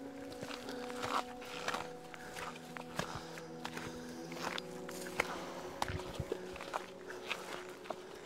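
Leaves and grass rustle as someone brushes past.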